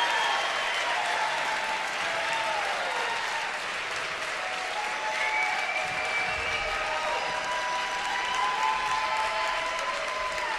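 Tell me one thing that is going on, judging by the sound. A jazz big band plays in a large hall, its horns holding long, swelling notes.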